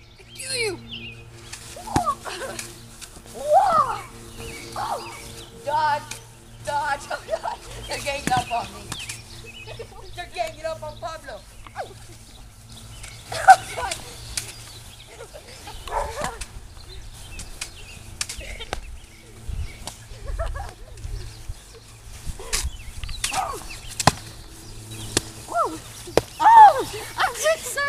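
Young boys shout and laugh excitedly outdoors.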